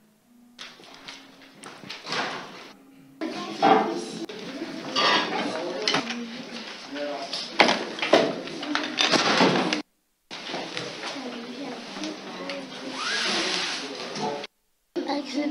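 Children chatter and clatter in a lively room.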